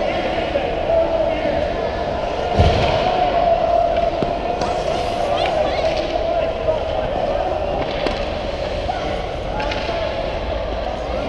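Ice skates scrape and carve across an ice rink.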